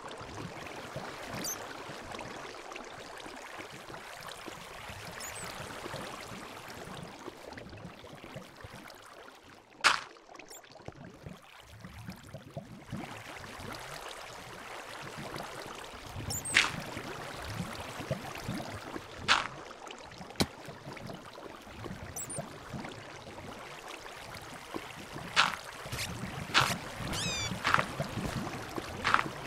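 Water flows and splashes steadily.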